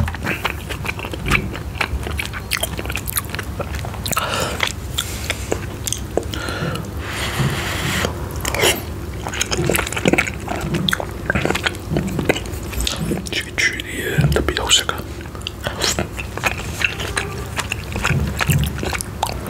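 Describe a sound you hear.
A young man chews and slurps food close by.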